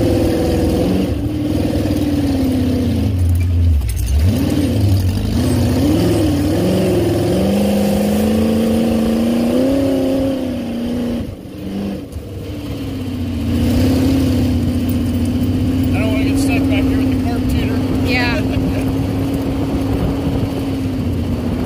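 A dune buggy engine roars and revs, rising and falling as it climbs.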